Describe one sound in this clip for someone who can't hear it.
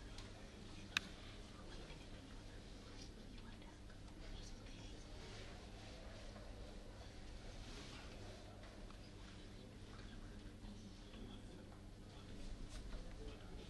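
A murmur of voices fills a room.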